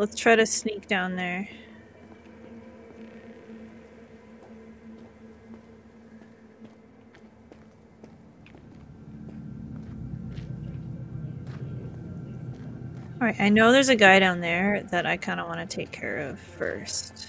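Footsteps tread slowly over hard ground.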